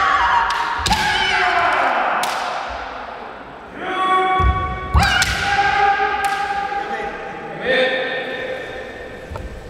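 Two men shout loud, drawn-out battle cries in an echoing hall.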